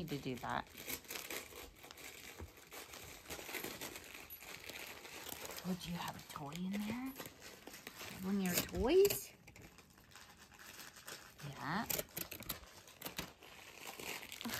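Kittens paw at crinkly paper, which rustles.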